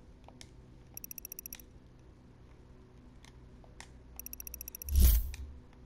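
Short electronic beeps tick rapidly in quick bursts.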